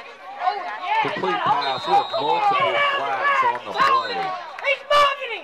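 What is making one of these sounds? Cheerleaders shout a loud cheer together.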